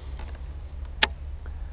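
A fishing reel clicks sharply.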